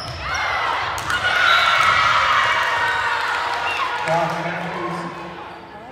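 A crowd cheers and claps in an echoing gym.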